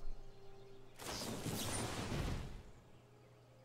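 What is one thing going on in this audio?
A card game plays a shimmering magical whoosh.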